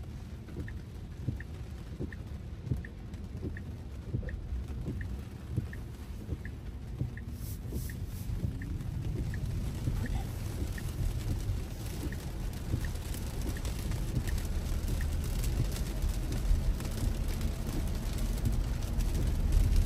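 A car's tyres rumble steadily on a wet road, growing louder as it speeds up.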